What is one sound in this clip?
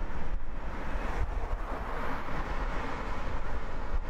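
A truck engine hums close by as the truck passes.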